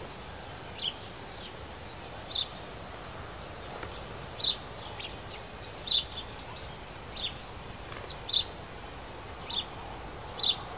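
Small birds chirp in short, repeated calls close by.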